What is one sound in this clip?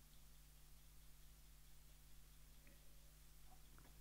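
A man sips a drink.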